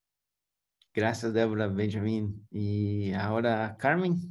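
A middle-aged man speaks warmly over an online call.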